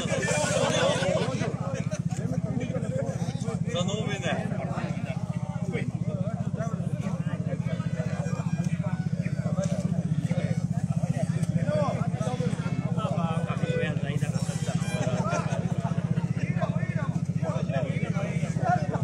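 A group of people sing together outdoors.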